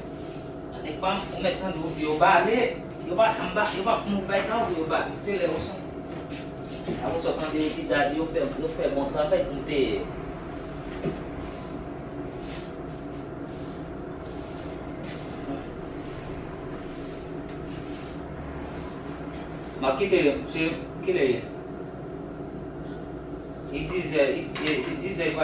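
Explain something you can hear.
A young man talks with animation nearby.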